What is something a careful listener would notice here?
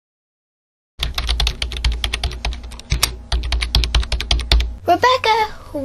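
Keys on a small keyboard click rapidly.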